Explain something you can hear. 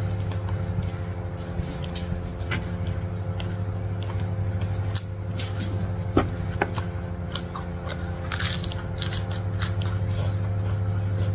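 Fingers rustle and pick through food on a plate.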